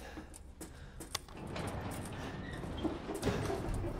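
A metal lift gate rattles shut.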